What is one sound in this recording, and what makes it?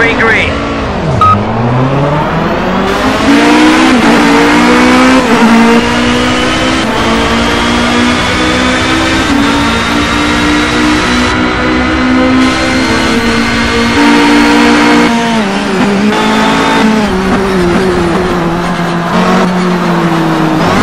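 A racing car engine roars loudly, rising in pitch as it speeds up through the gears.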